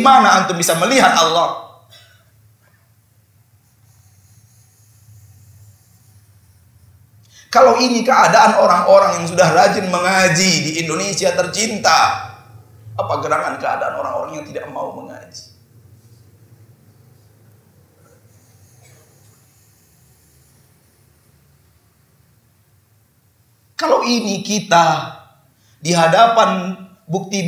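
A man speaks with animation into a microphone, with long pauses, in an echoing hall.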